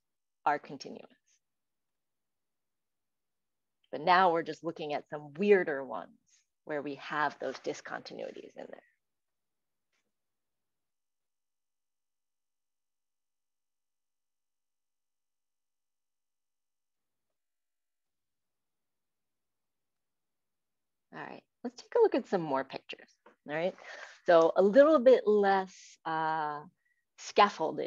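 A woman speaks calmly through an online call, pausing now and then.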